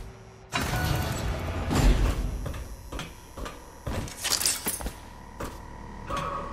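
Footsteps clang on a metal grate.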